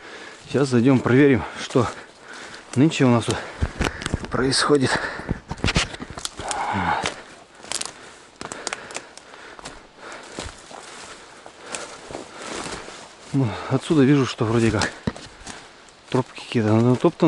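Footsteps crunch and snap through dry twigs and undergrowth.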